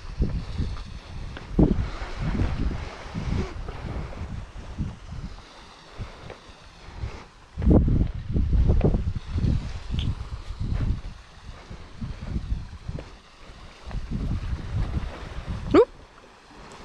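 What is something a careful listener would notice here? Wind buffets the microphone in gusts outdoors.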